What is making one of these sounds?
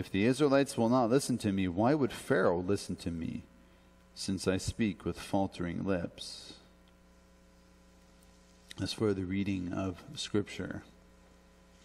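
A man speaks calmly through a headset microphone, in pauses.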